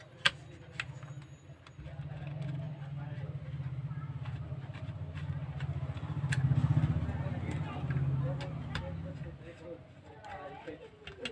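A screwdriver scrapes and clicks against small metal screws.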